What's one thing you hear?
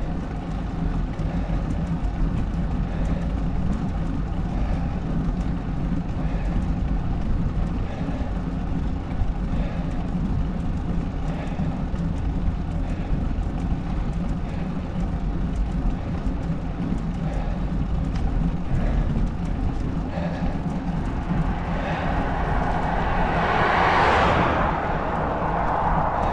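Wind rumbles steadily across a moving microphone outdoors.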